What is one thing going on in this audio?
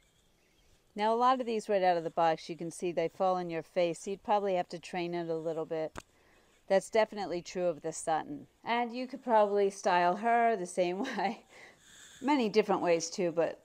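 A middle-aged woman talks calmly and closely into a microphone.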